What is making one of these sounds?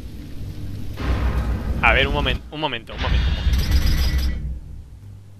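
A fiery blast roars with a low rumble.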